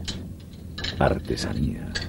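Wooden lace bobbins clack against each other.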